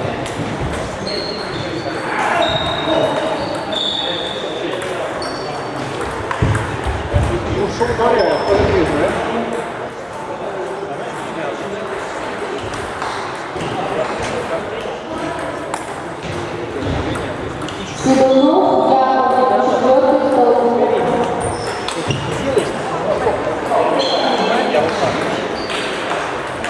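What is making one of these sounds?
Ping-pong balls click on tables and paddles in a large echoing hall.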